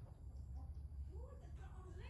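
A young woman gives a soft kiss.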